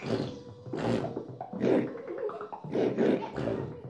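A man plays a saxophone.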